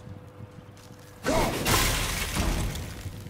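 An axe whooshes through the air with a loud swing.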